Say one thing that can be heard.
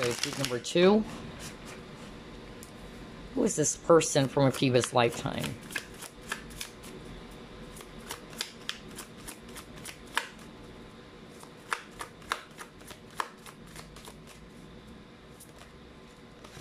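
Cards riffle and flick softly as a deck is shuffled.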